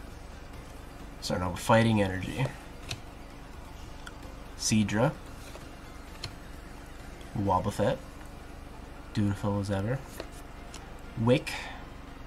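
Trading cards rustle and slide between fingers.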